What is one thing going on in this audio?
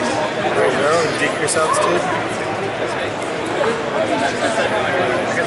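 A crowd of adults chatters all around in a busy, echoing hall.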